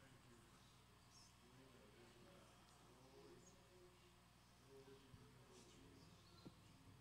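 A woman sings softly into a microphone.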